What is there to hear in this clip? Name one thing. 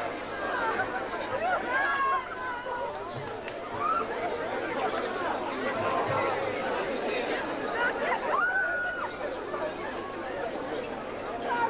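A large crowd of young men and women chatters and shouts all at once, close by.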